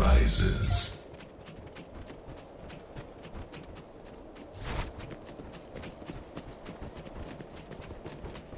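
Armored footsteps clatter quickly and steadily.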